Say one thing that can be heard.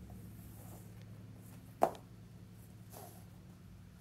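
A fabric toy on a cord drags across the floor.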